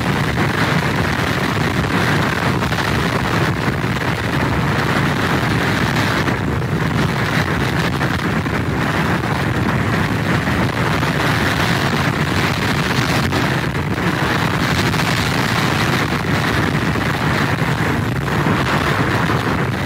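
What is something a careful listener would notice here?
Heavy surf crashes and churns nearby.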